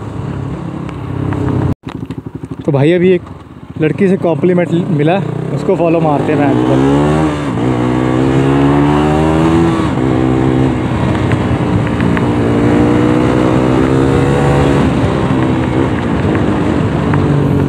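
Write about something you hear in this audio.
A motorcycle engine revs hard, rising in pitch with each gear change, then drones steadily at speed.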